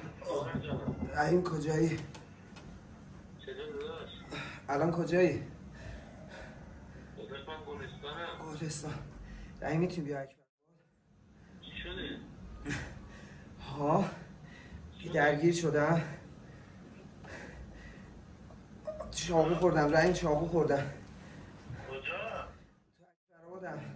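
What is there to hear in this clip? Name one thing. A young man speaks into a phone held close, in short bursts.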